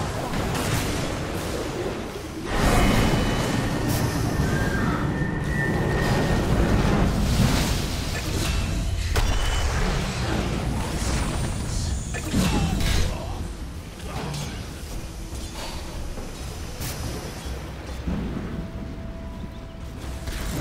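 Spell blasts and fiery explosions crackle and boom in a game battle.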